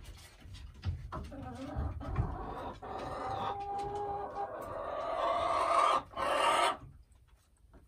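A hen clucks and squawks loudly close by.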